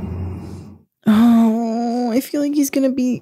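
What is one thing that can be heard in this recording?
A young woman groans and moans loudly into a close microphone.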